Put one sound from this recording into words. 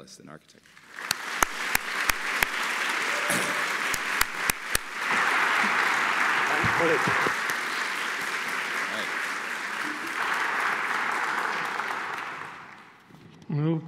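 An audience applauds in a large echoing hall.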